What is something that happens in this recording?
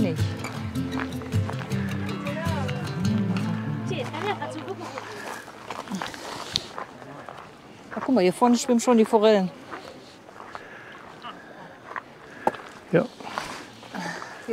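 A woman talks close by, outdoors.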